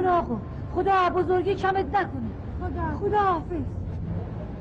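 A woman pleads loudly and tearfully, close by.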